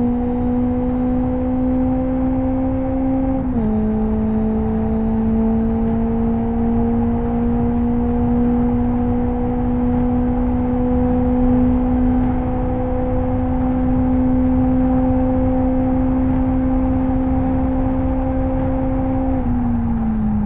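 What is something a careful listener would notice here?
A racing car engine drones at high revs, dropping as the gear shifts up.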